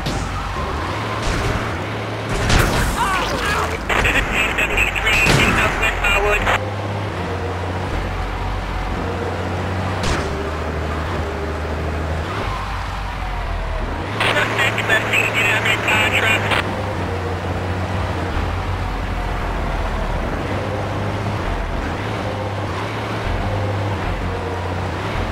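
A fire truck engine drones as the truck drives along a road.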